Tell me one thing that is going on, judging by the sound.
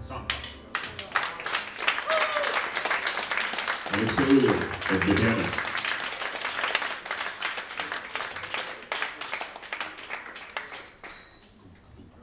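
An audience claps and cheers loudly, then fades.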